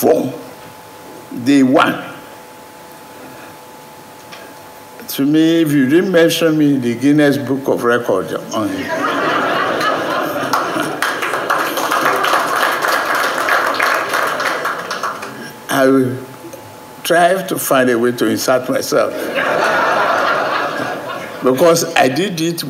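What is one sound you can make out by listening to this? An elderly man speaks calmly into a microphone to an audience.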